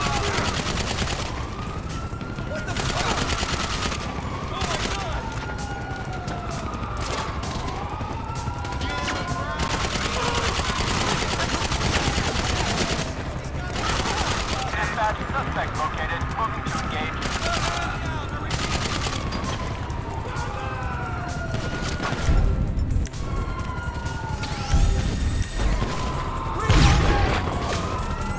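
Gunshots fire rapidly in bursts, close by.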